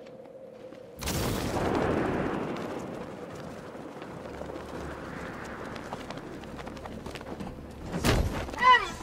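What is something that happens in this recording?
Wind rushes loudly past while gliding through the air.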